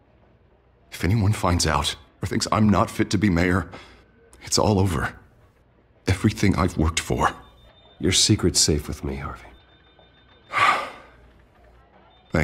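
A second man answers calmly, up close.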